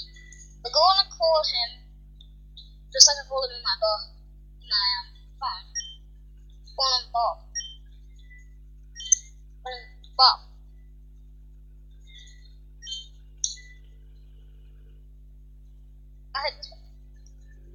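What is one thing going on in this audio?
Short electronic beeps sound as game menu choices are made.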